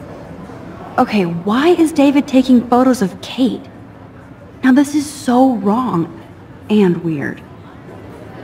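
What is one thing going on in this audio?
A young woman speaks quietly to herself, close and clear, with puzzled surprise.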